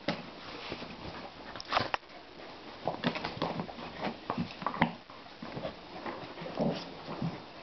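A hand rubs and strokes a dog's fur close to the microphone.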